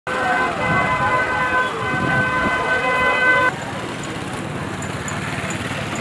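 A busy street bustles with traffic and crowd noise.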